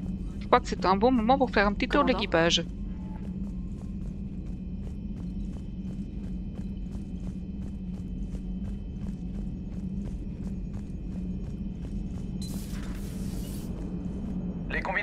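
Footsteps tap steadily on a metal floor.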